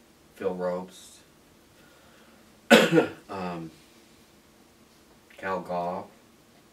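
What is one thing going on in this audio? An elderly man speaks calmly and hesitantly, close by.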